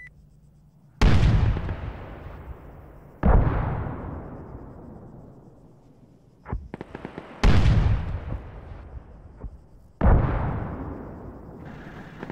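A tank cannon fires with loud booms that echo and roll away across open country.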